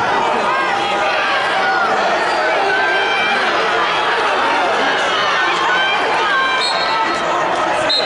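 Shoes squeak on a mat.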